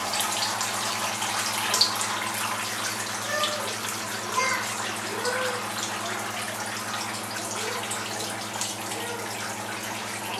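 Whey trickles and drips into a metal pot.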